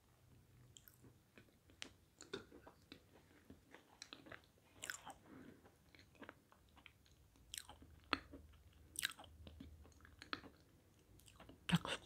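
A woman chews and smacks her lips close to a microphone.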